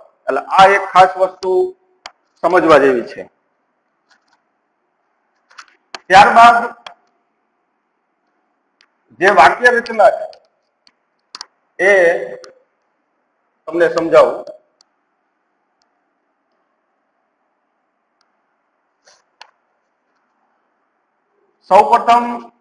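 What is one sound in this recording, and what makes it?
A man speaks in short phrases with long pauses, as if explaining a lesson.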